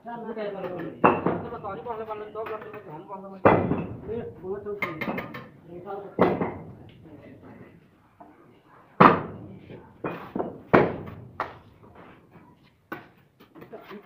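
A trowel taps and scrapes on bricks.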